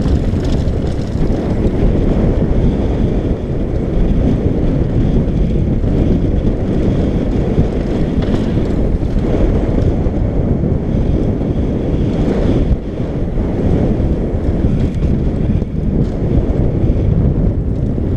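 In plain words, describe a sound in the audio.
Wind roars loudly against a helmet at speed.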